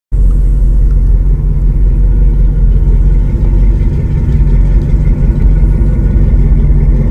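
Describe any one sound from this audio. A boat engine rumbles low and steady at idle.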